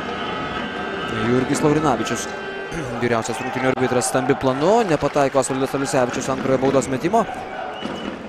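A crowd chants loudly in unison.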